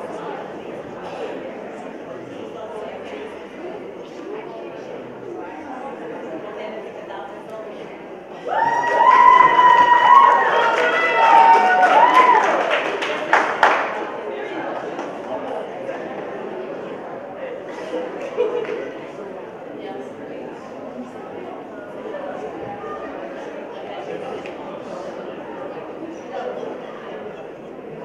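An audience murmurs and chatters in a large echoing hall.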